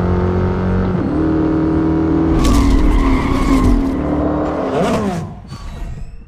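A car engine roars at high speed, then winds down.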